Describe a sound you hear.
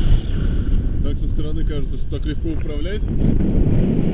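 A man speaks close to a microphone, outdoors in wind.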